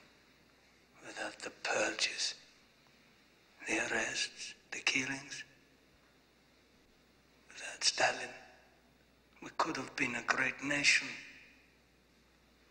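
A middle-aged man speaks in a low, intense voice close by.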